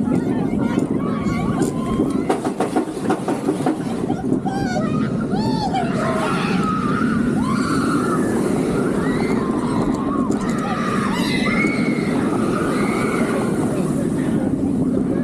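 A steel roller coaster train roars and rattles along its track at speed.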